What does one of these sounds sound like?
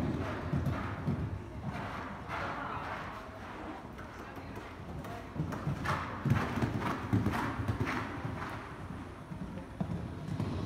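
A horse's hooves thud on soft sand as it canters.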